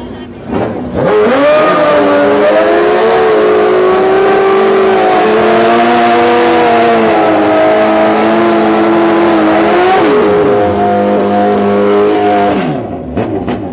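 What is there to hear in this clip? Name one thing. A motorcycle engine roars loudly at high, steady revs.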